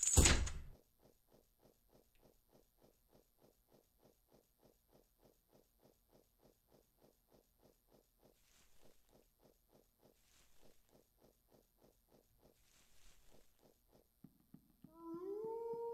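Footsteps tap softly and steadily.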